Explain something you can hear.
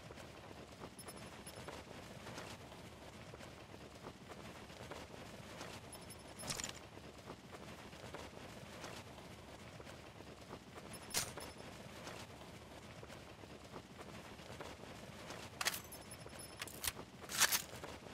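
Wind rushes steadily past during a long fall.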